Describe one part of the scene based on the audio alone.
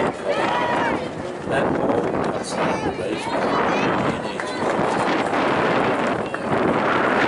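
Young women on a field shout and cheer loudly outdoors.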